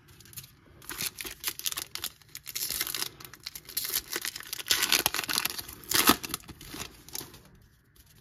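A foil card pack wrapper crinkles and tears open.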